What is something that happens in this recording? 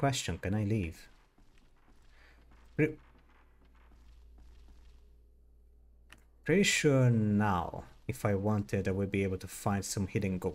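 Footsteps creak on wooden floorboards.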